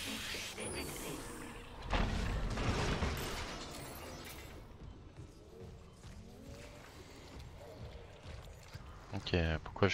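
A weapon fires with sharp bursts.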